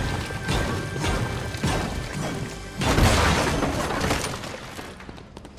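A pickaxe strikes a stone wall with sharp cracks.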